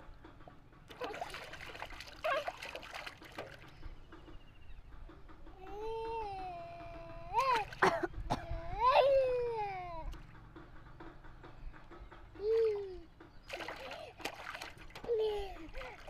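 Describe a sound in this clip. Water splashes in a small tub as a toddler slaps it.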